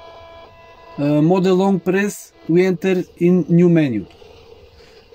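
A radio plays loud, warbling sounds through a small speaker.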